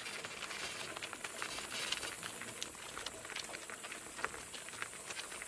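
Hooves clop steadily on a gravel road.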